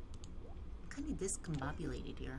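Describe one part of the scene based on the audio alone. A game menu pops open with a short chime.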